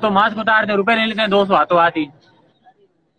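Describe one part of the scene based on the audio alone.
A man speaks loudly close by.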